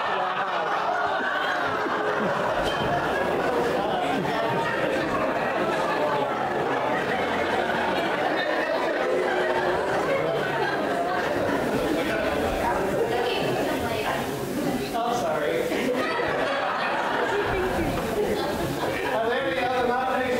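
A crowd of adult men and women murmurs and chatters in a large echoing hall.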